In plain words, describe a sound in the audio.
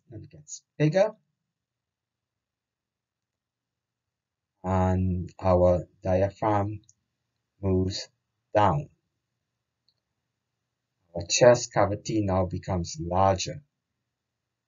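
A man speaks calmly into a microphone, explaining with pauses.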